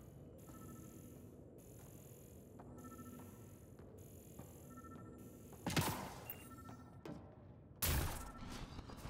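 Laser guns fire in short bursts.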